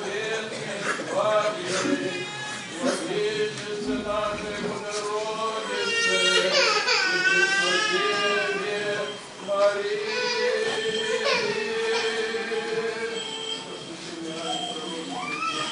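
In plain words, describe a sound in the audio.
Men's voices chant together in a slow sung prayer, echoing in a large hall.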